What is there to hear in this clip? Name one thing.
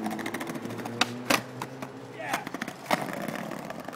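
A skateboard clacks on concrete.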